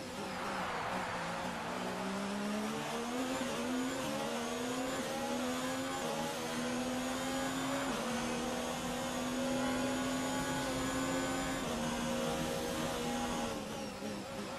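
A racing car engine screams, rising through the gears with sharp upshifts.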